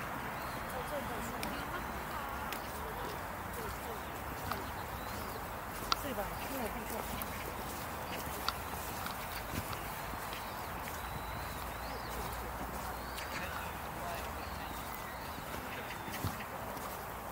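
Footsteps walk steadily on paving stones.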